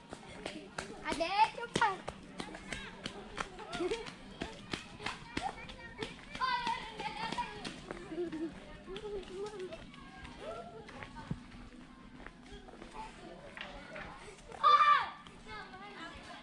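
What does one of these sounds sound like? Children call out and chatter nearby outdoors.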